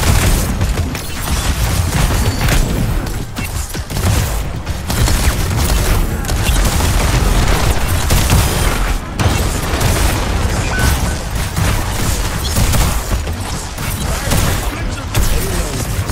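Game weapons fire in rapid bursts with booming blasts.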